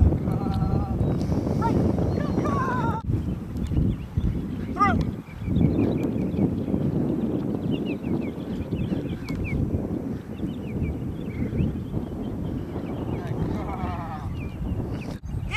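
A man calls out commands to a dog outdoors.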